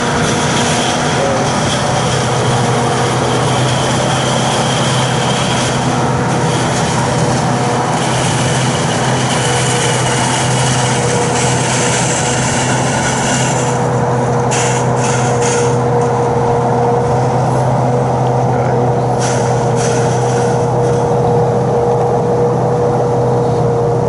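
A large harvesting machine roars steadily nearby.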